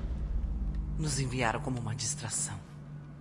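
A woman speaks weakly and hoarsely close by.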